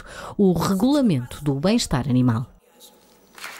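A woman speaks into a microphone over loudspeakers, in a hall that echoes.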